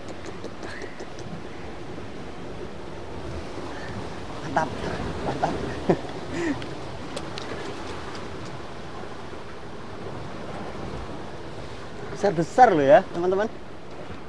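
Water washes steadily against rocks outdoors.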